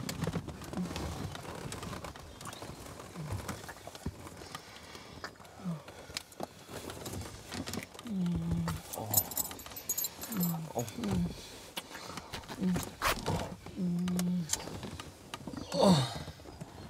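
A couple kisses with soft, wet smacking sounds.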